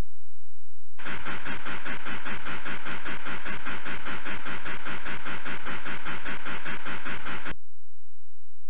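A steam train chugs rhythmically.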